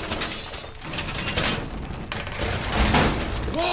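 Heavy metal panels clank and scrape as they are fixed against a wall.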